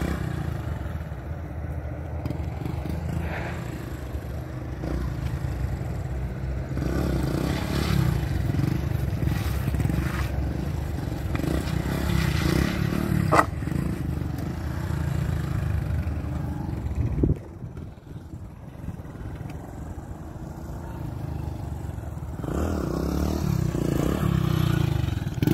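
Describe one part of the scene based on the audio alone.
A small motorbike engine revs up and down nearby.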